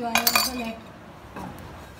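Bread cubes slide and tumble off a plate into a pan.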